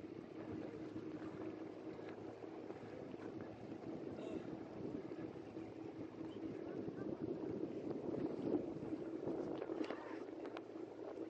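Water splashes around a tractor's wheels.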